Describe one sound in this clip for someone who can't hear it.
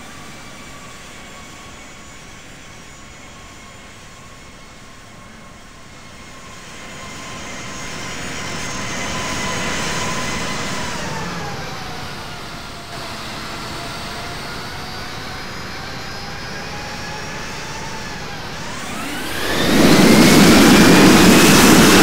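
Jet engines whine steadily, the pitch sinking and then rising.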